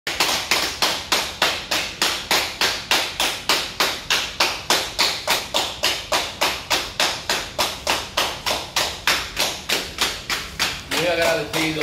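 Several people clap their hands in a steady rhythm.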